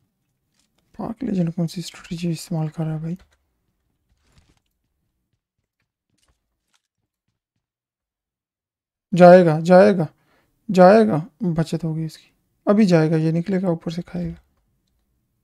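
A young man talks into a close microphone with animation, in short bursts.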